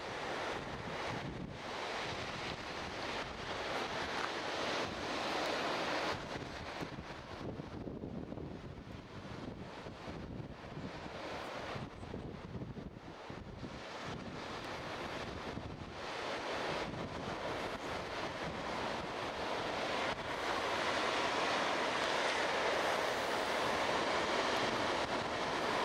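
Wind blows across the open coast.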